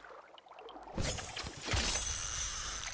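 A spear splashes into water.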